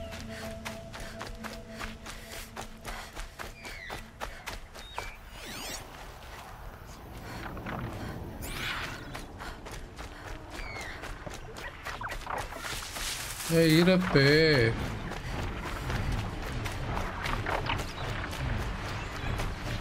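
Footsteps rustle through grass and leaves.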